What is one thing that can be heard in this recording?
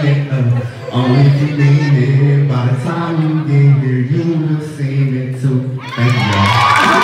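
A man sings loudly through a loudspeaker in a large room.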